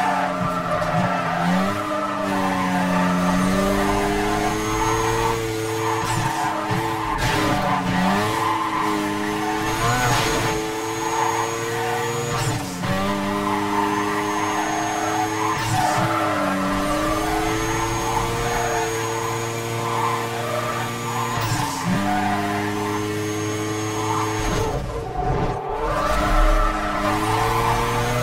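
A sports car engine roars at high revs, rising and dropping as the gears shift.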